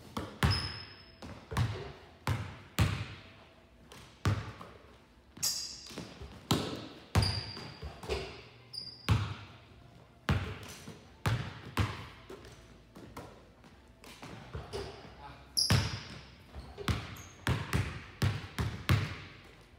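Basketballs bounce on a wooden floor, echoing in a large hall.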